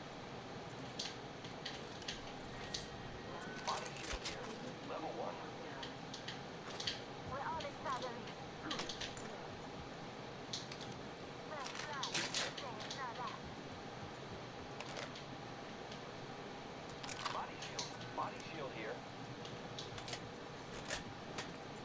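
Short metallic clicks and clatters sound as gear is picked up in a video game.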